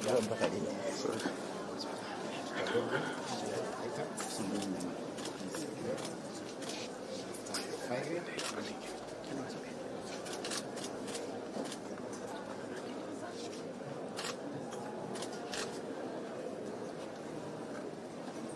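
Papers rustle as they are handled.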